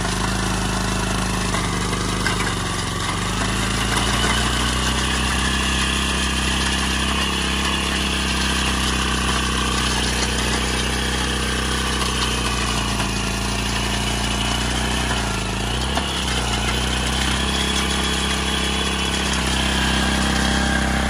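A small diesel engine chugs steadily up close.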